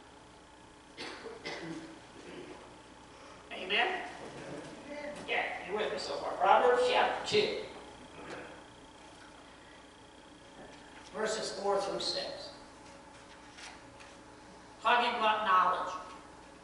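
A middle-aged man speaks calmly through a microphone, with pauses between phrases.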